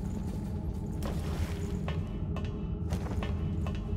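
Hands and feet clank on the rungs of a metal ladder.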